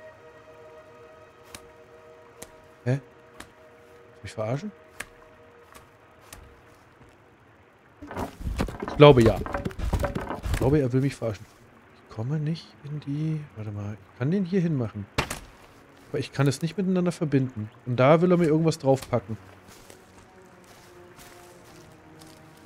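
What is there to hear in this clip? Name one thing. Footsteps fall softly on grass and rock.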